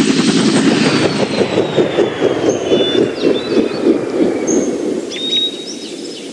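A helicopter's rotor thumps as it lands and slows.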